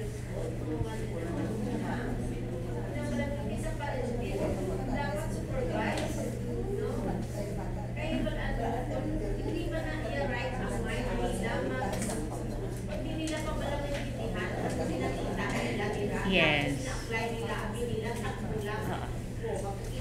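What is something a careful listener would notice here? A woman talks calmly through a microphone and loudspeakers.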